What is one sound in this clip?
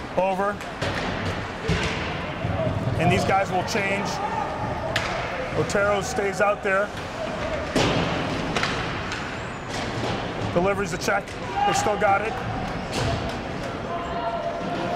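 Spectators in a crowd cheer and shout close by, in a large echoing arena.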